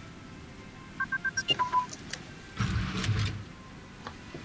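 A brief chime and thud sound as a notice pops up.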